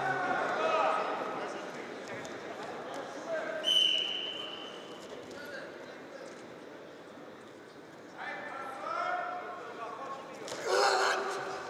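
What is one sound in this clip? Wrestlers' feet shuffle and thud on a mat.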